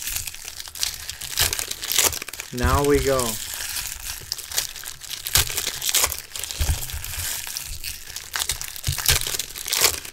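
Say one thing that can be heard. Foil card wrappers crinkle and tear close by.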